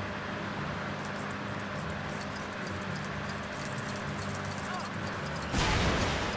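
Small coins jingle in quick, bright tinkles.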